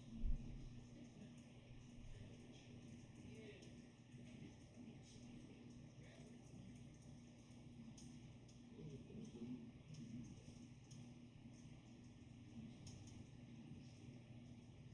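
A rap song plays quietly with a steady beat.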